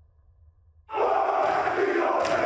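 A group of men chant and shout loudly together.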